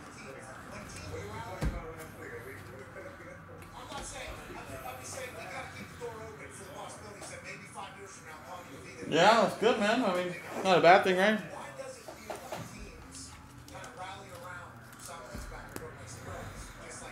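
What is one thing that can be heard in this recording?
Cards rustle and click in a man's hands.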